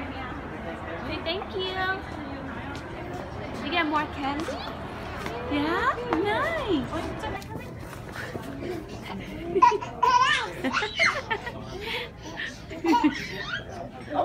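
A young child babbles and squeals nearby.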